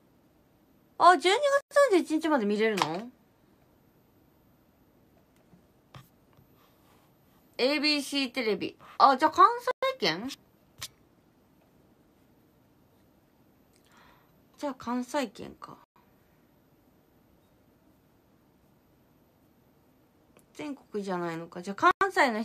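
A young woman speaks calmly and close to a microphone, in short bursts with pauses.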